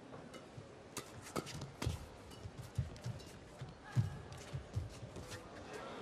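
Rackets smack a shuttlecock back and forth.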